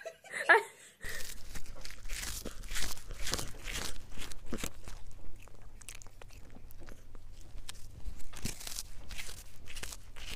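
A cat chews on a treat stick.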